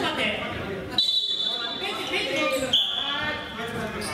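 Sneakers squeak sharply on a wooden floor.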